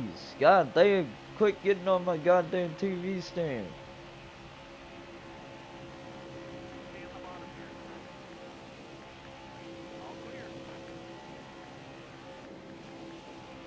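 Race car engines roar steadily at high speed.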